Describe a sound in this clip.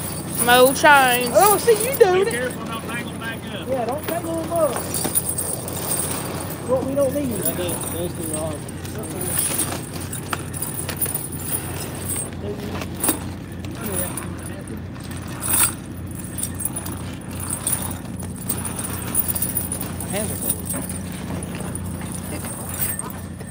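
Metal chains clink and rattle as they are dragged over snow.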